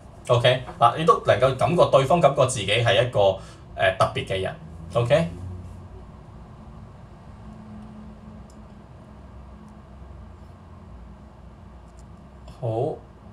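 A young man talks with animation, close to the microphone.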